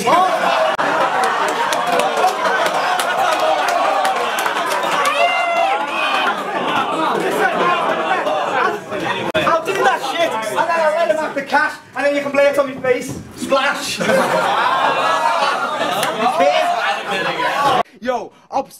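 A young man raps loudly and rhythmically into a microphone.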